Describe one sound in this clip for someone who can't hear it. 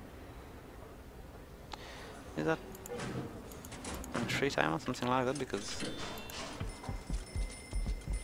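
A game menu clicks open.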